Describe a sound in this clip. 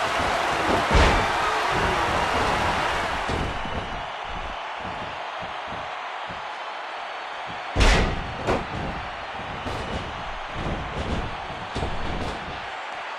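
A large crowd cheers loudly, then quietens.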